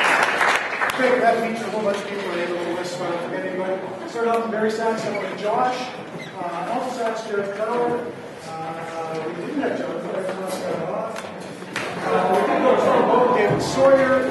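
A man speaks with animation through a microphone, echoing in a large hall.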